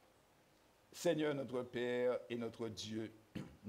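A man speaks slowly and solemnly into a microphone, heard through loudspeakers in an echoing hall.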